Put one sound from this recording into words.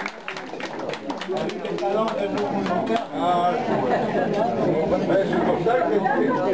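Several older men and women chat together nearby at a table.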